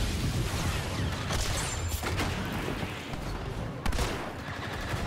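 Explosions boom and thud.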